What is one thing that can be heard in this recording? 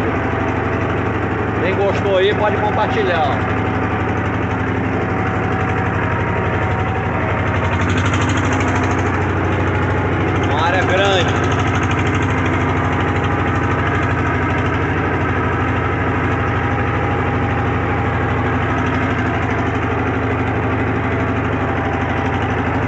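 A riding mower's engine drones steadily close by.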